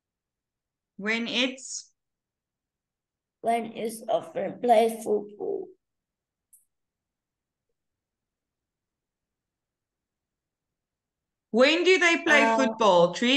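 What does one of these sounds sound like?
A woman speaks over an online call, in short bursts with pauses.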